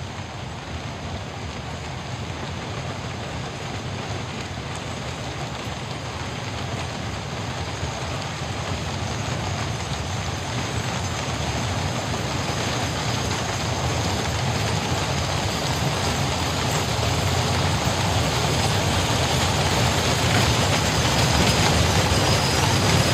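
Carriage wheels rumble over the road.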